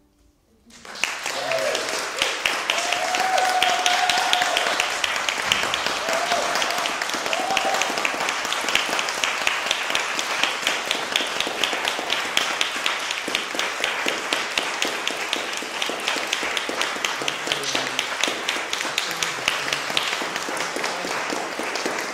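An accordion plays a lively tune in an echoing hall.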